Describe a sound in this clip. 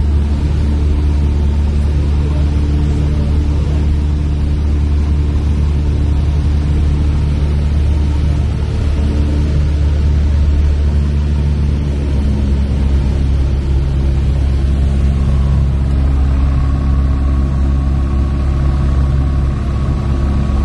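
A small plane's propeller engine drones loudly and steadily.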